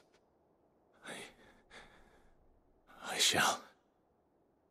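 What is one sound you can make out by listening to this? A man answers quietly.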